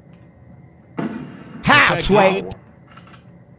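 Gunshots crack loudly in quick succession.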